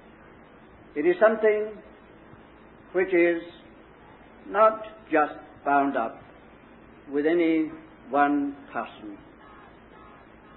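An elderly man speaks calmly in short phrases, heard through an old, muffled recording.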